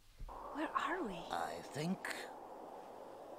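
A young woman speaks calmly through a loudspeaker.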